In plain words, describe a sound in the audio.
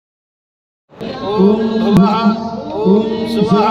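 Men chant in unison nearby.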